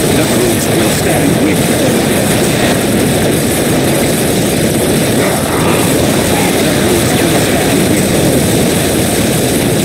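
Rapid laser gunfire crackles in a battle.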